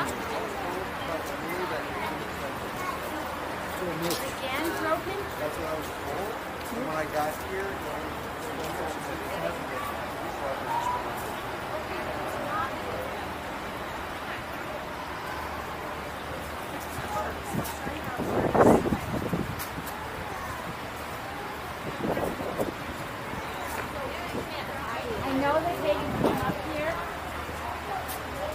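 A crowd of children and adults chatters nearby outdoors.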